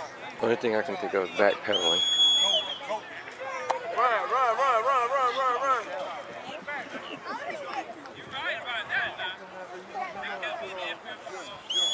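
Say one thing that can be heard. A crowd of men, women and children talks and calls out outdoors.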